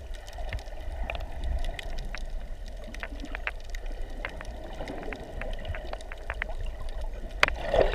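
Bubbles pop and crackle in the water.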